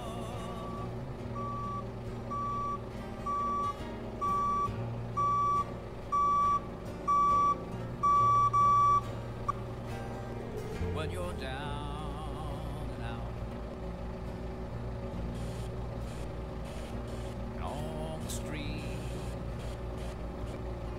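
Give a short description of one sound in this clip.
A forklift engine hums steadily.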